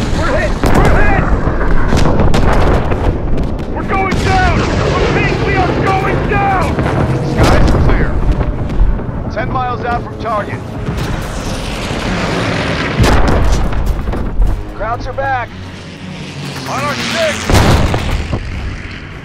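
Explosions boom and crack around a plane.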